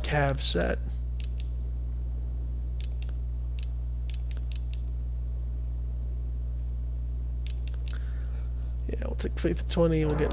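Soft game menu clicks tick now and then.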